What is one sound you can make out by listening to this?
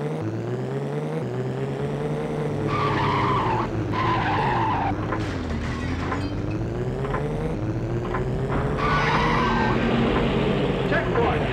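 A sports car engine revs and whines, rising and falling with speed.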